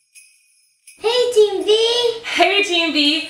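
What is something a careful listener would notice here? A young woman speaks loudly and with animation, close by.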